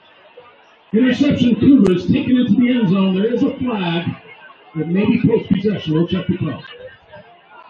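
A crowd of young men on the sideline cheers and shouts loudly.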